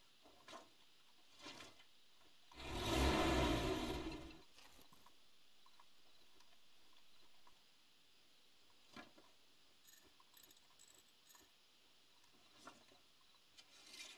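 Metal tools clank and knock against a vehicle's body.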